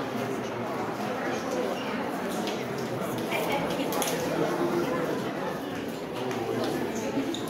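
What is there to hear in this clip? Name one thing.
Footsteps shuffle and tap on a wooden stage.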